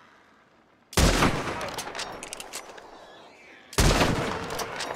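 A rifle shot fires with a loud crack that echoes away.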